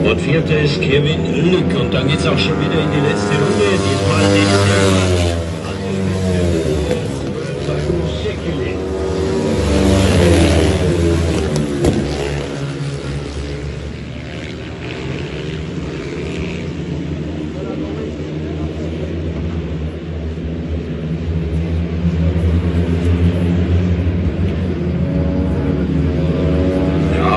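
Motorcycle engines roar loudly, rising and falling in pitch as the bikes race past.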